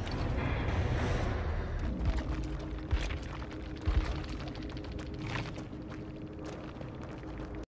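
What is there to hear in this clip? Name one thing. Footsteps run through rustling tall grass.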